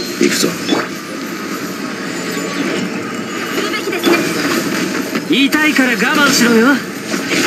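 Magic blasts whoosh and crash in quick bursts.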